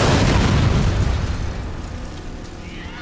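An explosion booms loudly and rumbles away.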